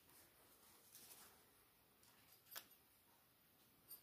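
Thread and fabric rustle in a woman's hands.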